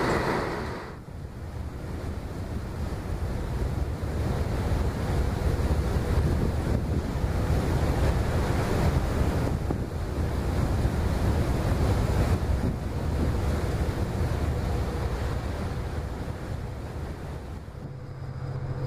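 Water churns and rushes in a boat's wake.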